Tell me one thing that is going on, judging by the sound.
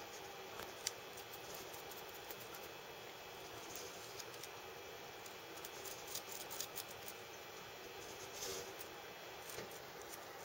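Metal tweezers tick and scrape softly against plastic.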